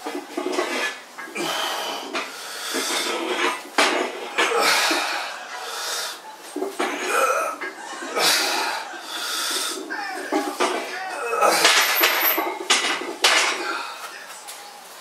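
A man grunts and breathes hard with effort, close by.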